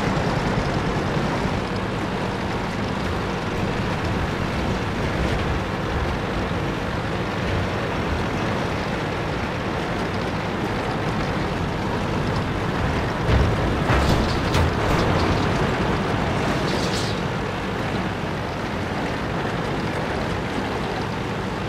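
A tank engine rumbles steadily as the tank drives over rough ground.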